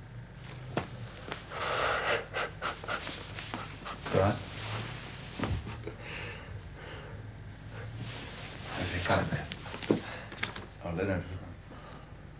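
A young man talks cheerfully and laughs nearby.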